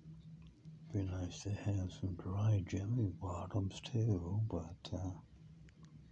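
An elderly man speaks quietly and hoarsely, very close by.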